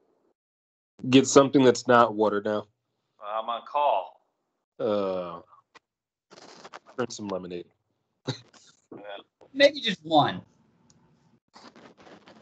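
A person speaks calmly over an online call.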